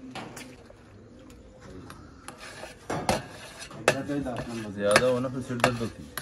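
A metal ladle scrapes and clanks against a metal plate.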